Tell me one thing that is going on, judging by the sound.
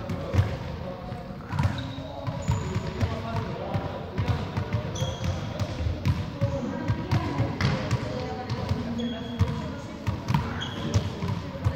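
A ball taps repeatedly off a racket in a large echoing hall.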